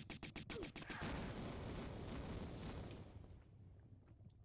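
An explosion roars and rumbles.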